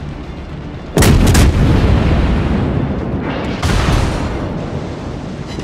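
Heavy naval guns fire in loud booming blasts.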